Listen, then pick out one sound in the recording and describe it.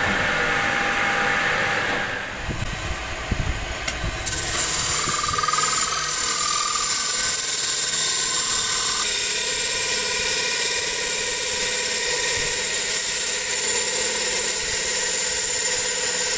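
A lathe motor whirs steadily.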